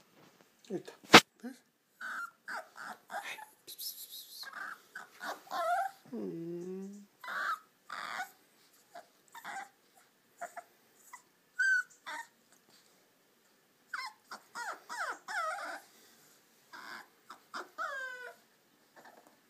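A puppy whimpers and yelps in short, high squeaks, close by.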